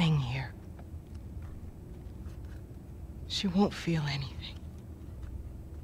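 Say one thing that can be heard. A young woman speaks tensely.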